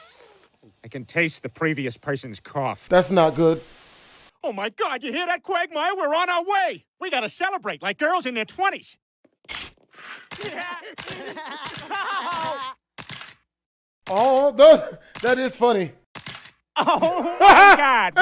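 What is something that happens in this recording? A man talks and exclaims with animation into a close microphone.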